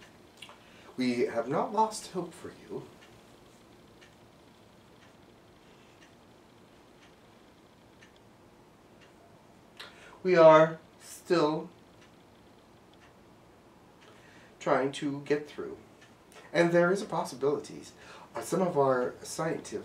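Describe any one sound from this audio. A middle-aged man talks calmly nearby, in short bursts.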